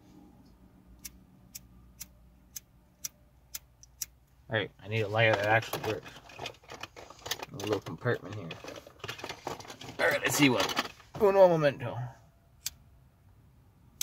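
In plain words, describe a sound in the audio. A lighter clicks repeatedly.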